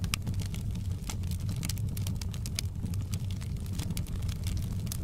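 A wood fire roars steadily.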